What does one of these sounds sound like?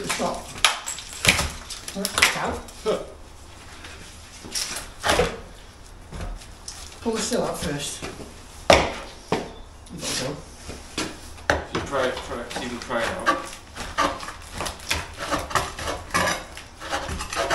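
Metal tools knock and clank on a door frame.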